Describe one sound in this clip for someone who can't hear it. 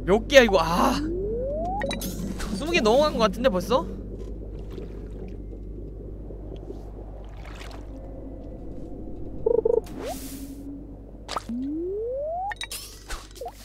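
A fishing line is cast with a quick rising whoosh in a video game.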